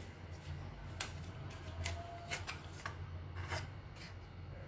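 A plastic packet crinkles close by.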